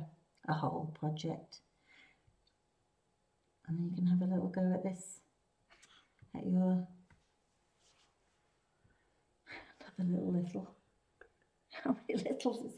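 A woman talks calmly close to the microphone.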